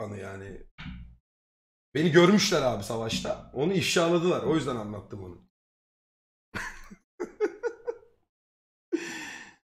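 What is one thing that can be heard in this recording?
A young man talks animatedly, close to a microphone.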